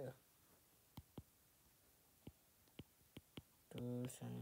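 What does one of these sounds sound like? A stylus taps and clicks on a tablet.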